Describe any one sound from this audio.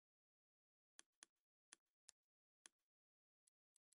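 Soft clicks tick several times.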